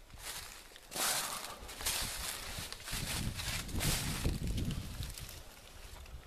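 Fabric rustles and brushes close by.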